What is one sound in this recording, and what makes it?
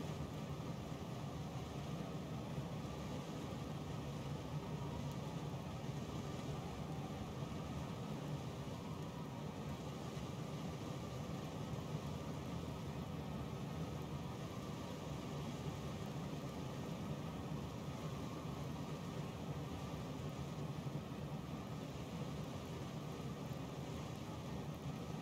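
A fire crackles softly in a furnace.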